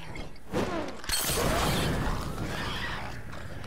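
A fire bursts into flame with a loud whoosh.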